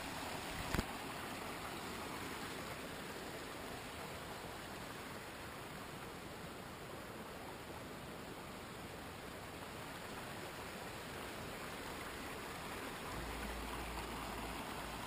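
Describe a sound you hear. A shallow stream trickles over rocks nearby.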